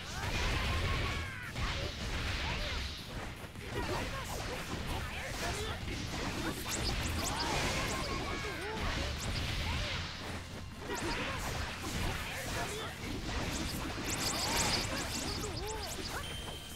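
Punches and blows land with sharp hits and crackling bursts.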